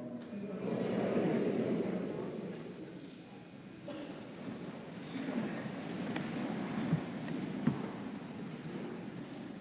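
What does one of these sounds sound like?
A man speaks calmly at a distance in a large echoing hall.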